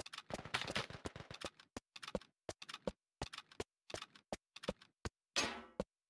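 A rifle magazine clicks out and snaps back in.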